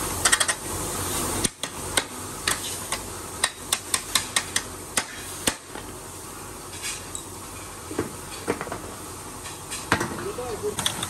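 Metal parts of a child's tricycle click and clank as they are fitted together by hand.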